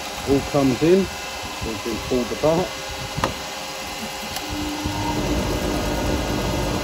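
A wood lathe whirs steadily as it spins.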